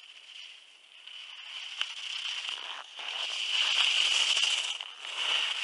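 Skis carve and scrape across packed snow, growing louder as a skier passes close by.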